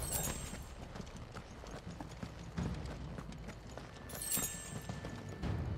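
A magical shimmering chime rings out.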